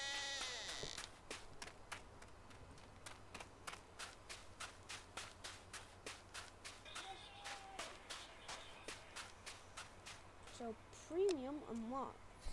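Footsteps crunch steadily on snow.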